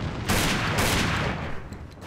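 Shells click one by one into a shotgun.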